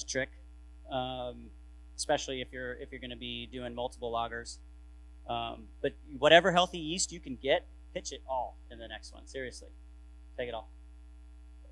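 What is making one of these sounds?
A man speaks calmly to an audience through a microphone.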